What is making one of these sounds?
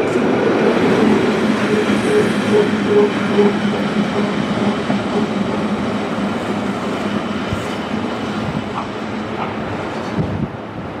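Train wheels rumble and clatter over the rails, slowly fading.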